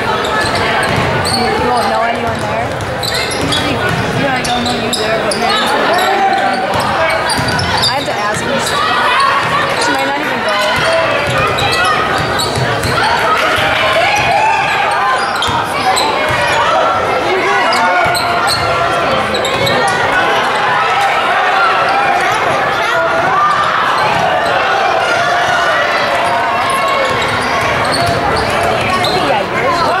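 A crowd of spectators murmurs and cheers in a large echoing gym.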